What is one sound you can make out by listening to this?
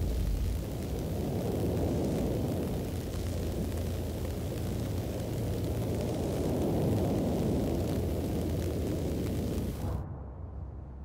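Wind blows loudly outdoors.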